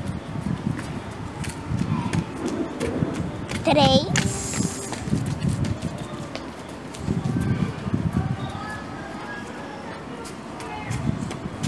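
Skate wheels roll past on pavement.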